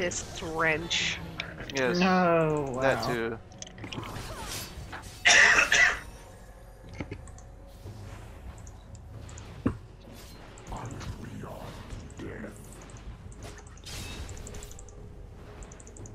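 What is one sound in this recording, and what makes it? Spell effects and weapon hits clash in a video game battle.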